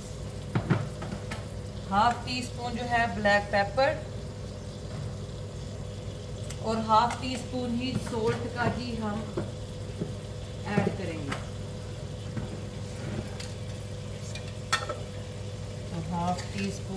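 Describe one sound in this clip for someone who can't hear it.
Fish fillets sizzle steadily in hot oil in a pan.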